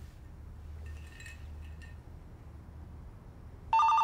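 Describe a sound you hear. A woman sets a glass down on a counter.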